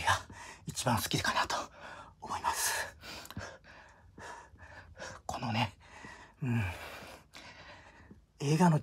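A middle-aged man grunts with effort.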